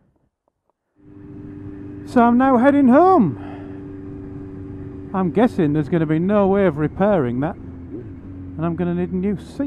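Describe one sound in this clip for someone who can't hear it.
Wind rushes past the moving motorcycle.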